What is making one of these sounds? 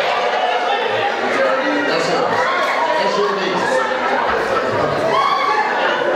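A crowd of voices sings and calls out loudly in a large echoing hall.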